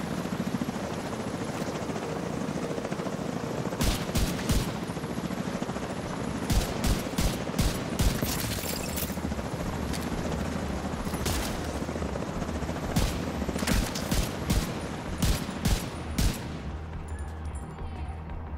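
A helicopter's rotor thumps and drones steadily.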